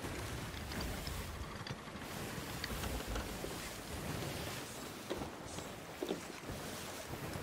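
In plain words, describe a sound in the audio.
Wind blows hard across the open sea.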